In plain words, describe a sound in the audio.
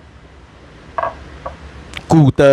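Ceramic cups clink lightly together.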